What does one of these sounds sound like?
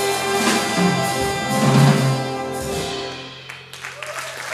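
A big band plays a loud final chord in a large hall.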